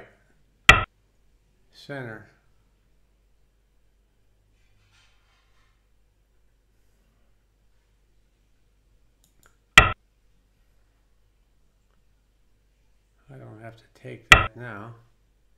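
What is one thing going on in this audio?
A stone clicks sharply onto a game board.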